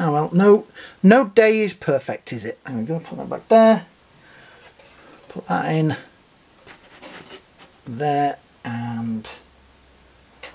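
A small plastic toy is set down on a hard surface with a soft tap.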